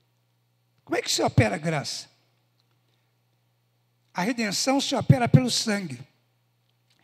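A man speaks with animation into a microphone over loudspeakers, in short bursts.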